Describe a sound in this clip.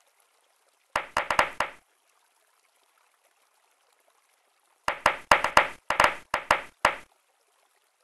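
Balls clack together in quick bursts of popping chimes.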